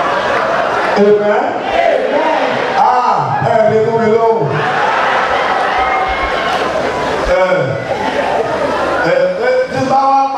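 A man sings loudly through a microphone over loudspeakers in a large echoing hall.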